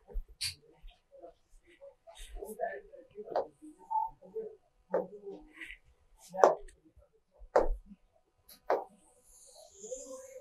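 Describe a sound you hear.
A woman speaks calmly, as if explaining a lesson.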